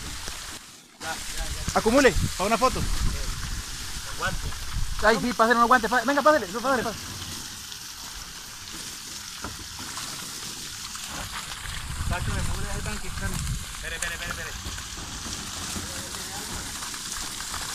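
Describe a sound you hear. Water splashes as fish are tipped onto a tarp.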